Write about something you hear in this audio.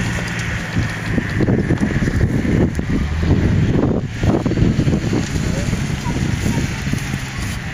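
Wind blusters loudly across the microphone outdoors.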